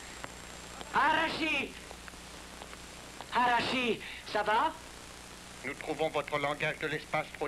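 A man speaks loudly and urgently.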